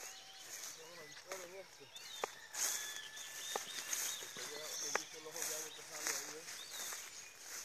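A man talks nearby outdoors.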